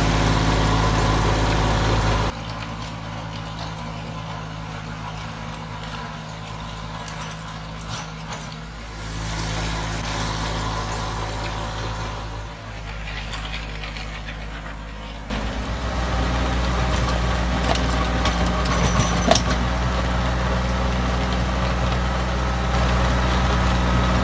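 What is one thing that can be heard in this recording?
A rotary tiller churns through soil.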